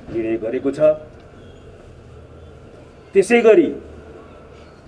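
A middle-aged man speaks calmly into microphones, close by, in short bursts.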